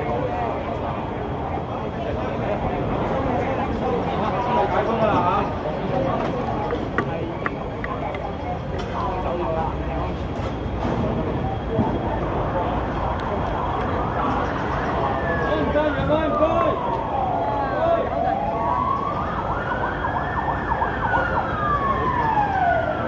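A crowd of men and women shout and talk over each other close by.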